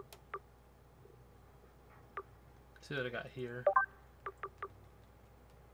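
Short electronic blips sound from a video game menu as selections change.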